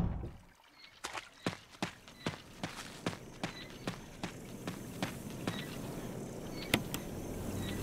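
Footsteps crunch slowly on a path outdoors.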